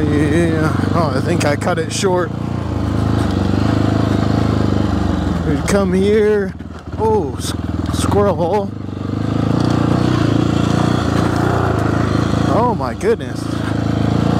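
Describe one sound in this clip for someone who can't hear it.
A motorcycle engine revs up and down sharply.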